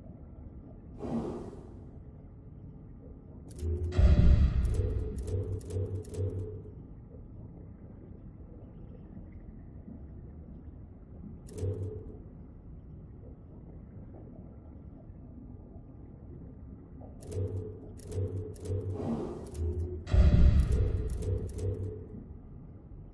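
Short electronic chimes and clicks sound in bursts.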